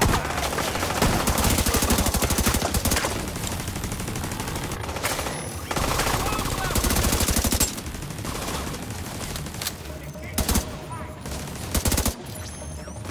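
Rapid bursts of automatic gunfire rattle close by.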